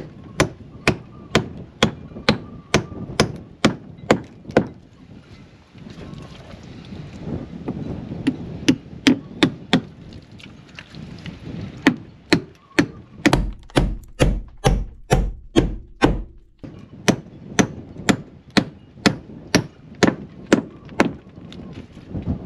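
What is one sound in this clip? A hammer knocks sharply on wood in quick, repeated blows.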